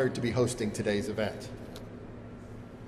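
A man speaks through a microphone and loudspeakers in a large hall.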